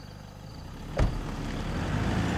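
A car engine revs up as the car pulls away.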